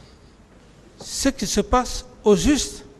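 A man speaks calmly into a microphone, heard close.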